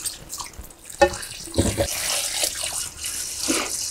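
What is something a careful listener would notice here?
Water runs from a tap into a bowl.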